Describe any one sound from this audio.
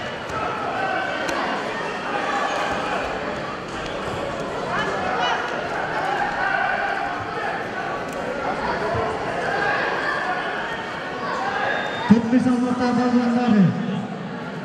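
A crowd of young spectators chatters in a large echoing hall.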